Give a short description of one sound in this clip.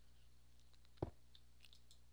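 A stone block thuds into place.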